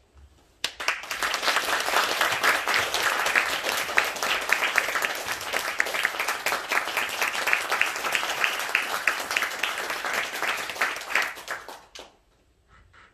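An audience applauds loudly in a hall, then the clapping stops.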